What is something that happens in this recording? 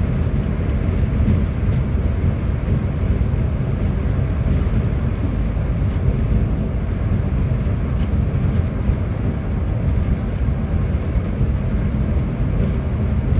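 Tyres roll on a road with a steady low roar.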